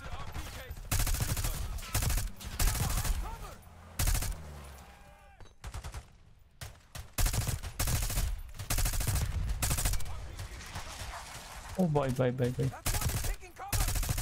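Rapid gunfire bursts ring out close by.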